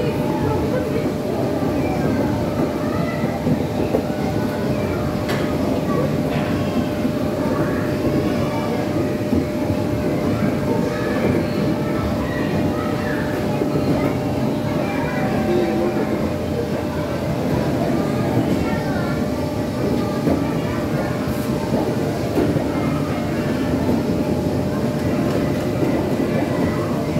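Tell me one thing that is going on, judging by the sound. Young children shout and chatter nearby.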